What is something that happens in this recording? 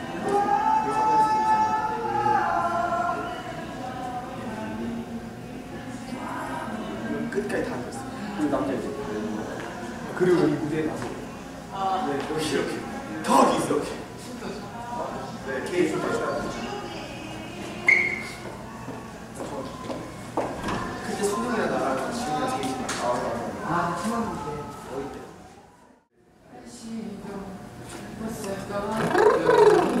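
Young men talk and laugh with animation in an echoing room.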